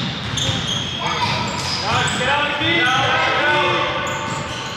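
Young children shout and call out during play.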